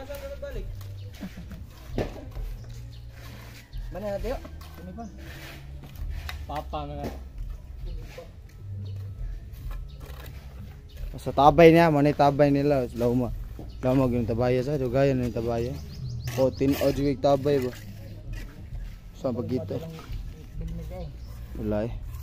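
A trowel scrapes across wet cement.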